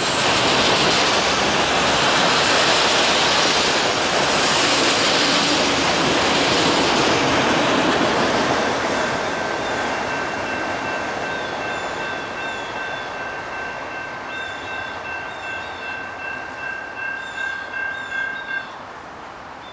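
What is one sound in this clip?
A freight train rumbles along the rails and fades into the distance.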